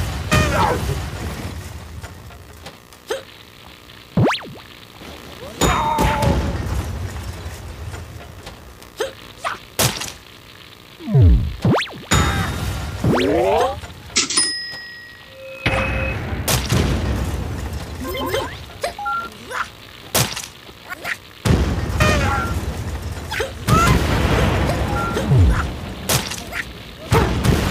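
Explosions boom and crackle in a video game.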